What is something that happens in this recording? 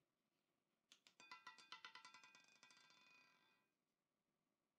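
A roulette ball rattles and clicks across the spinning wheel.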